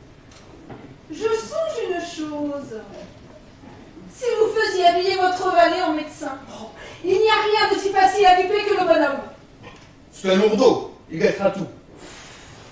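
A woman sings expressively.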